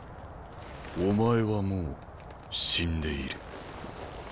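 A man speaks in a low, calm, deep voice.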